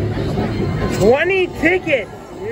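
An arcade machine sounds quick rising electronic chimes.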